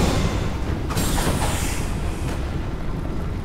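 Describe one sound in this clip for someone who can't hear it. Flames roar briefly.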